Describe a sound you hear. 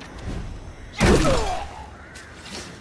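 A heavy blow lands with a loud thud and a swoosh.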